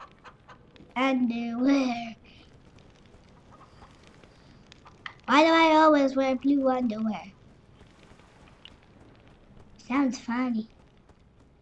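A young child speaks excitedly and close to a microphone, in short bursts.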